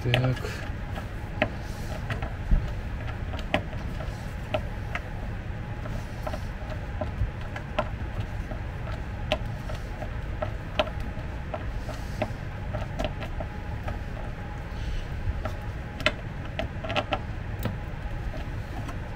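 Small parts knock and click against wooden panels.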